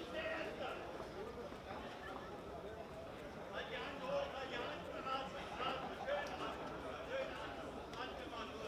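A crowd murmurs and calls out.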